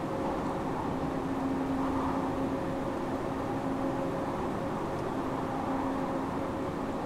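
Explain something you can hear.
A train's electric motor hums steadily.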